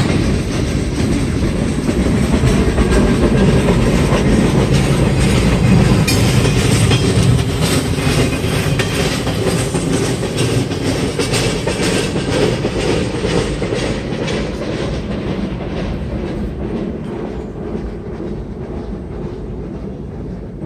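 A freight train rumbles past nearby and slowly fades into the distance.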